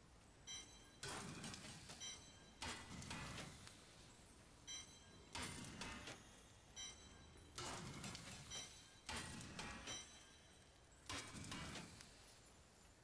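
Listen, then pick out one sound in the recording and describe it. Game items are salvaged with repeated sharp crunching, chiming sound effects.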